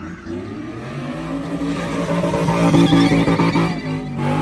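Tyres squeal on pavement.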